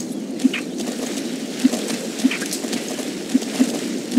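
A horse splashes through shallow water.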